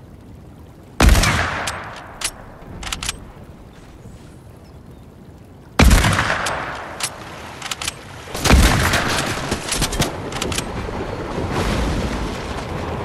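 Game gunshots crack in loud bursts.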